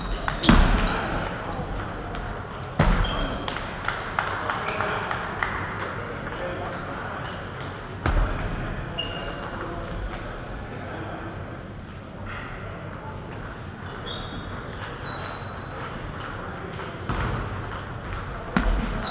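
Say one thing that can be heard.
Ping-pong balls click sharply against paddles and a table in an echoing hall.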